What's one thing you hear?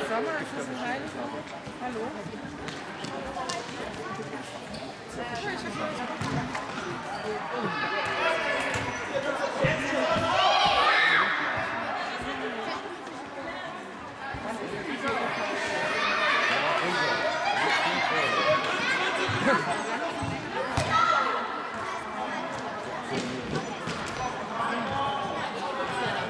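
Children shout and cheer loudly in an echoing sports hall.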